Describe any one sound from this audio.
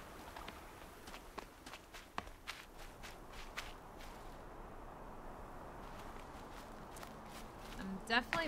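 Footsteps crunch on rocky ground.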